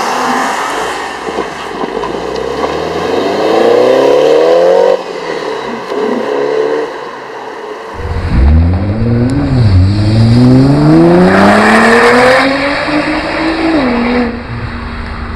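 A car engine revs hard and roars as the car speeds away.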